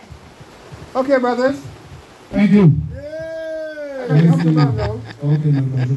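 An older man talks cheerfully close by.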